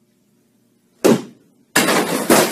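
A boy's bat smashes through a board with a crack.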